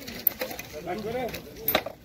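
Metal odds and ends clink as a hand rummages through them.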